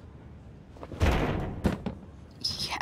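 A vending machine thuds as it is struck.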